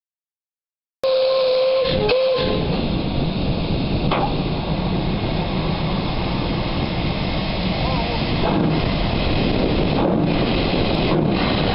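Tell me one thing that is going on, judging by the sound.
A steam locomotive hisses steam while standing at rest.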